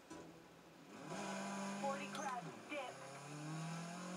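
A racing car engine roars and revs through loudspeakers.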